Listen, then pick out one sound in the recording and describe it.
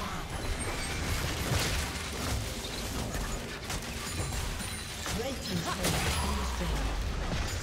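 Magic spells and weapon hits crackle and clash in a fast fight.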